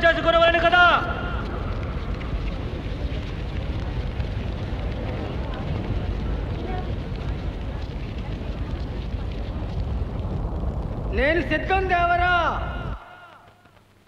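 A large crowd roars and clamours.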